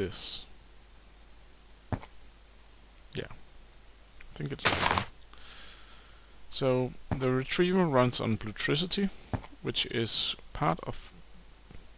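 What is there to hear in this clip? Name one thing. Blocks thud softly as they are placed.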